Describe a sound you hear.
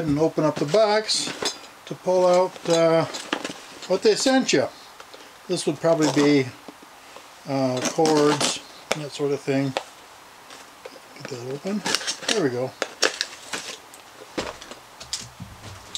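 A cardboard box scrapes and rustles as hands handle it.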